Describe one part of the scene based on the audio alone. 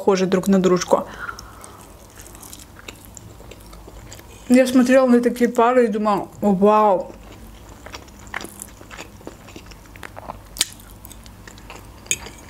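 A young woman chews food with soft, wet mouth sounds close to a microphone.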